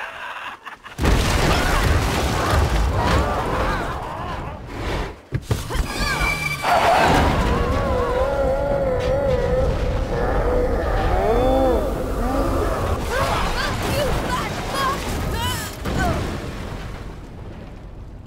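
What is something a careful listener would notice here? A van engine roars and revs loudly.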